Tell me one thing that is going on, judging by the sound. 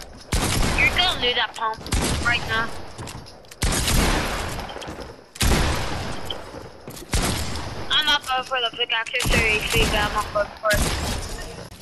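Gunshots blast loudly in quick bursts, echoing briefly.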